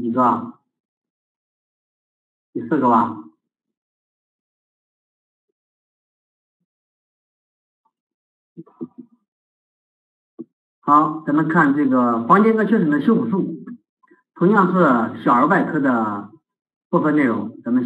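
A middle-aged man lectures calmly into a microphone, with pauses.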